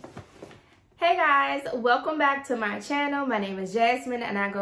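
A young woman speaks cheerfully and close up.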